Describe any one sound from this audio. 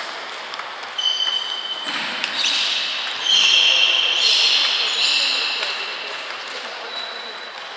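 Sneakers squeak sharply on the hall floor.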